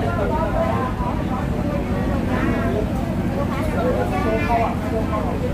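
Loud music with singing plays through a loudspeaker.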